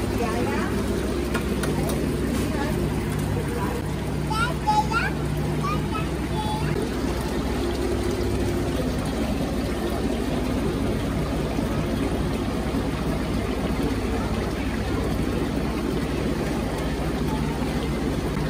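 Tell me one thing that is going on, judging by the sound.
Water bubbles steadily in a tank.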